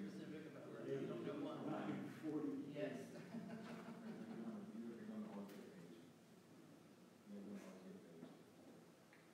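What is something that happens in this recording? An elderly man speaks calmly in a large, echoing room.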